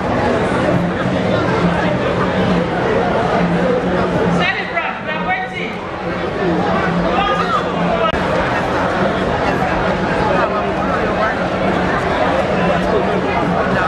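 A crowd chatters loudly all around.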